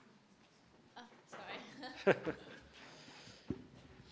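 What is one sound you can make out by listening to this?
A middle-aged man laughs softly.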